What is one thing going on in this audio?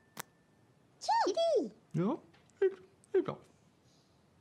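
Two small cartoon birds chirp and squeak in high voices.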